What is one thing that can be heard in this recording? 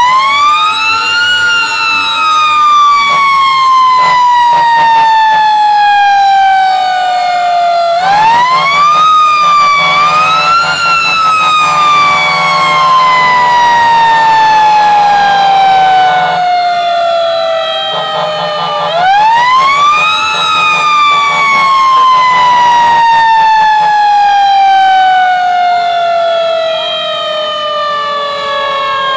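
A fire engine siren wails loudly close by, rising and falling slowly.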